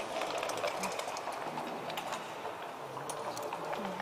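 Dice rattle and clatter onto a wooden board.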